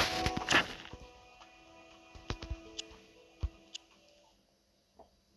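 Short electronic game sounds chime and click.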